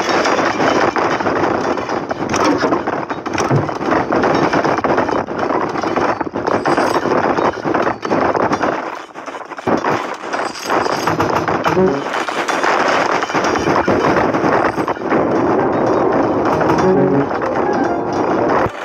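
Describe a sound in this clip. Pickaxes clink against gold ore.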